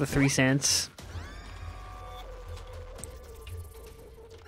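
A short rising video game jingle plays.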